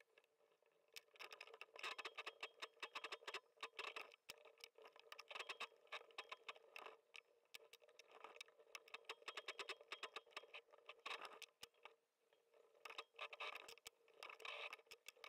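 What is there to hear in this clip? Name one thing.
A sewing machine stitches in quick bursts of rapid clicking.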